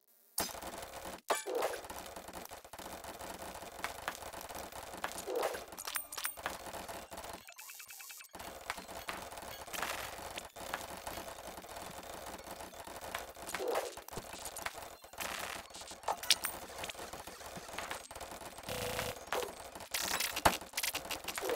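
Coins jingle and chime in quick bursts as they are collected.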